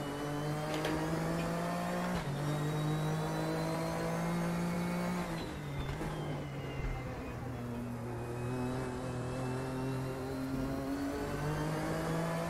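A race car engine roars steadily at high revs.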